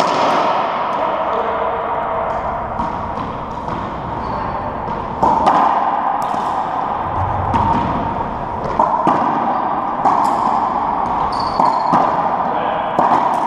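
A racquetball smacks off racquets and walls, echoing around a court.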